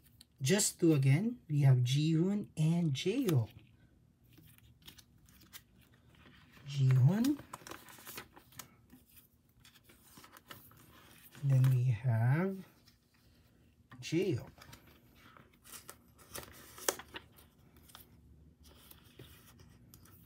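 Plastic sleeves crinkle and rustle as cards are handled.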